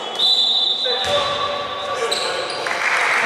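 A basketball bounces on the floor with hollow thuds.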